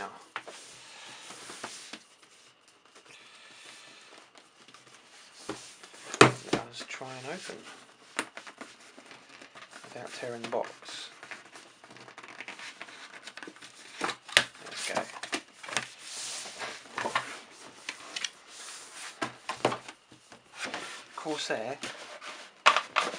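Hands handle and slide a cardboard box, with scraping and tapping.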